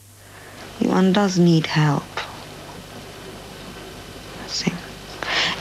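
A young woman speaks softly and close by, with pauses.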